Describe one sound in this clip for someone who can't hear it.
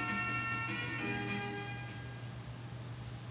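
Bright electronic game music plays and fades away.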